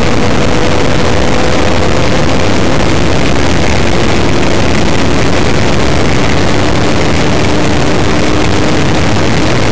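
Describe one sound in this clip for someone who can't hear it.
Loud wind rushes past at high speed.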